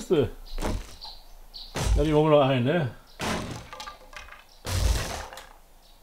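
An axe strikes a wooden wall with dull thuds.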